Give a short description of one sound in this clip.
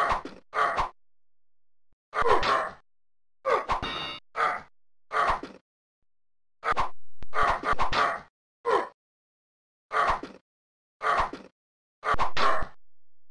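Swords clash with sharp metallic clangs.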